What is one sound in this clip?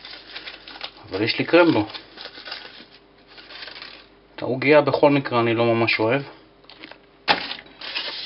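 Aluminium foil crinkles as it is unwrapped.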